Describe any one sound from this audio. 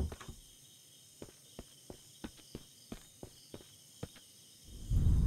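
Footsteps thud slowly on the ground.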